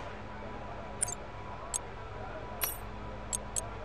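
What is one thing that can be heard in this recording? Short electronic menu clicks sound several times.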